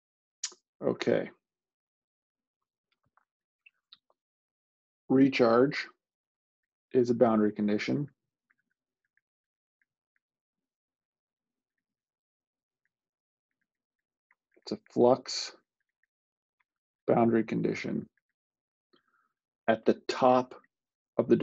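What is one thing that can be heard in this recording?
A man speaks calmly through a microphone in short phrases.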